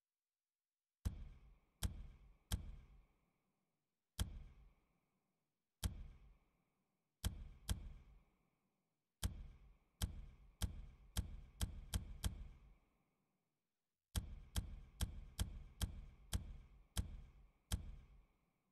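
Short sharp menu clicks sound with each selection, in quick bursts.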